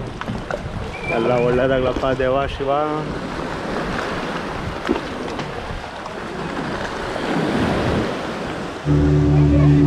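Shallow water splashes and laps against a shore.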